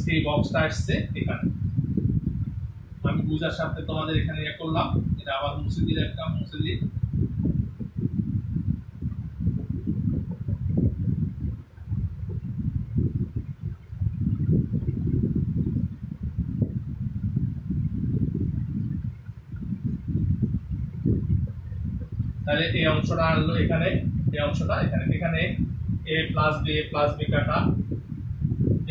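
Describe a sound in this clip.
A man speaks steadily and explains, close by.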